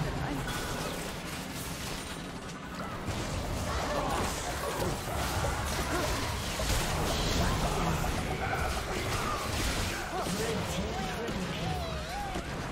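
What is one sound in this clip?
Spell effects whoosh, crackle and burst in a fast video game battle.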